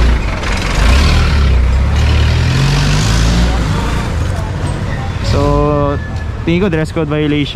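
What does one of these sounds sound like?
A motorcycle engine rumbles steadily nearby.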